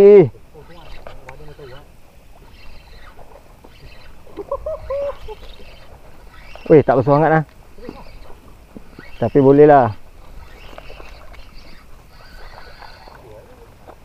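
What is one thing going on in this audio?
A fishing reel clicks and whirs as its handle is wound.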